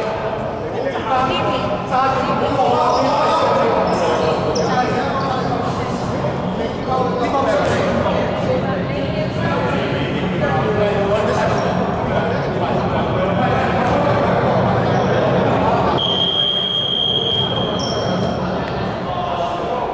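Several young men talk over one another in a large echoing gym.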